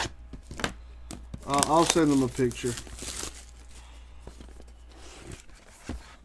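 Hands crinkle a foil trading card pack.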